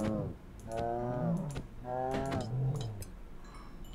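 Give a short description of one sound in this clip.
A creature grunts and squeals.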